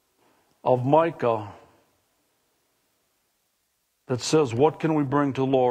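A middle-aged man speaks through a microphone, preaching with emphasis.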